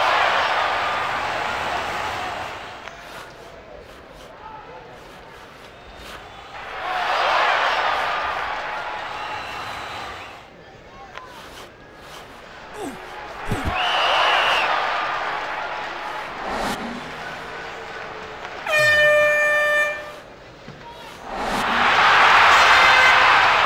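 A large crowd cheers in loud swells that rise and fade.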